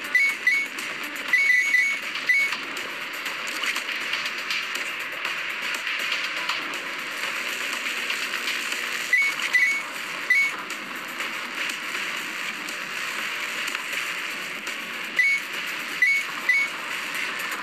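Short bright chimes ring out as coins are picked up.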